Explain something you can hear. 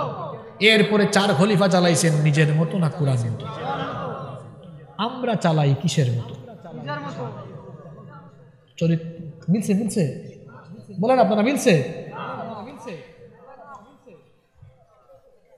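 A young man preaches with animation into a microphone, heard through loudspeakers with a reverberant echo.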